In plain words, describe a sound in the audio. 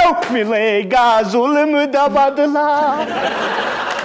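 A man sings out loudly in a wavering voice.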